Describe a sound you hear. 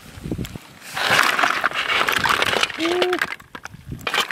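Snail shells rattle as they are tipped into a wicker basket.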